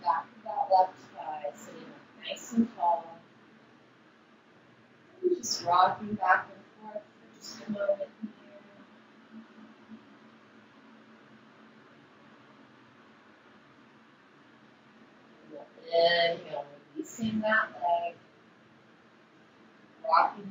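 A woman speaks calmly, as if giving instructions, close to a microphone.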